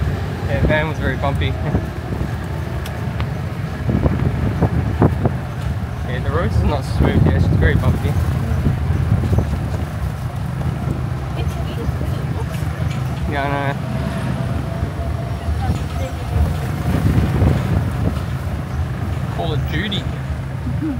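A motorized tricycle engine rumbles steadily while driving along a road.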